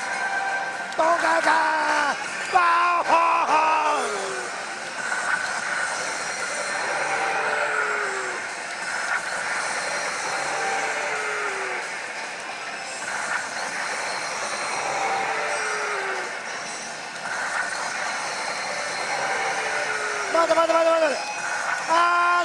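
A man exclaims excitedly close by.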